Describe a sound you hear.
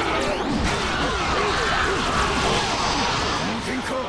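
A burst of energy blasts with a loud whoosh.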